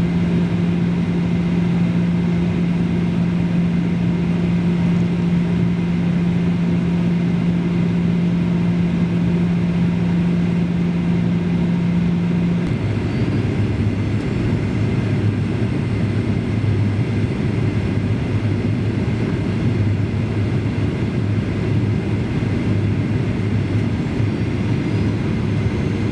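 Jet engines roar steadily, heard from inside an airliner cabin, with a low hum that drops in pitch partway through.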